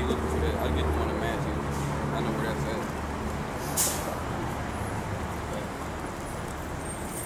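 A man speaks loudly close by, outdoors.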